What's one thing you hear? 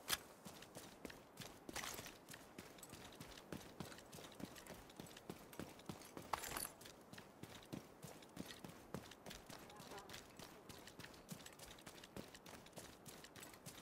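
Footsteps crunch quickly on dirt and grass.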